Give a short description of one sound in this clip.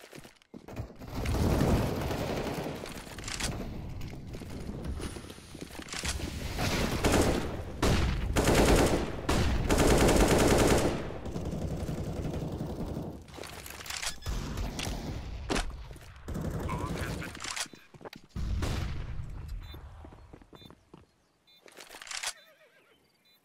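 Rifle gunfire rattles in rapid bursts.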